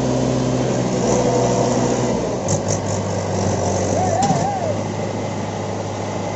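Tractor tyres grind on loose soil.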